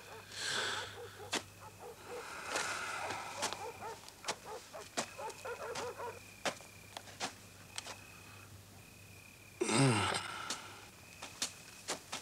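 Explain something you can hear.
An elderly man's footsteps crunch on a gritty floor.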